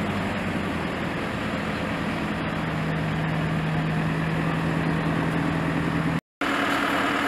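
A loader's diesel engine rumbles steadily nearby.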